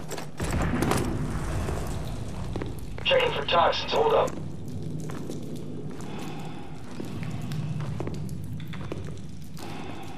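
Boots step on a hard floor.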